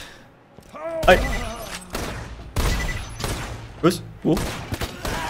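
Sniper rifle shots boom loudly.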